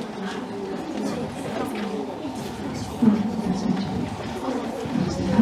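A girl talks quietly close by.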